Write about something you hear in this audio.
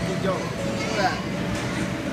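A young child squeals and shouts nearby.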